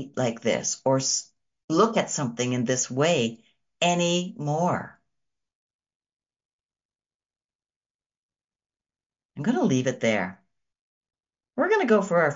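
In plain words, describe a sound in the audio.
A middle-aged woman speaks calmly and warmly, close to a microphone, with pauses.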